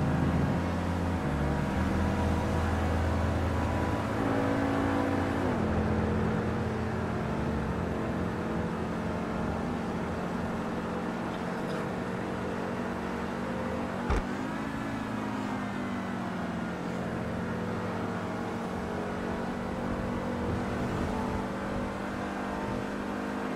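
A car engine hums steadily and shifts in pitch as it changes gear.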